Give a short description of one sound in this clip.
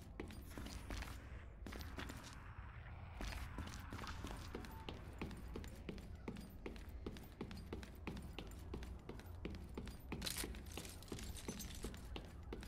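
Footsteps tread steadily on a hard metal floor.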